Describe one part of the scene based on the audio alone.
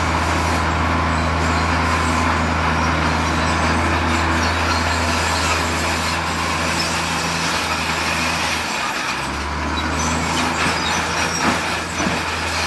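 Rocks and dirt tumble and rumble as they pour from a dump truck.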